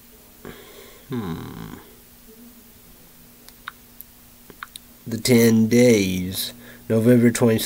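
A young man speaks close to the microphone, loudly and with animation.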